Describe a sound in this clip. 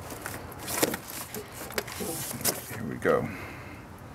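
A heavy battery knocks and scrapes as it is lifted out.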